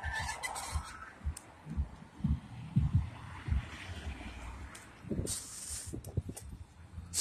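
A bicycle rattles as it bumps over cracks in the pavement.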